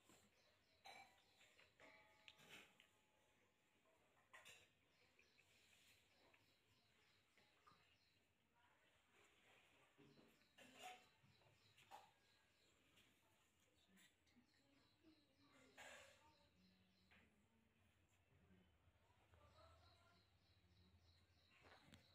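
Fingers rustle softly through hair.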